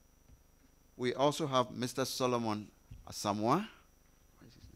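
A man speaks loudly and clearly through a microphone.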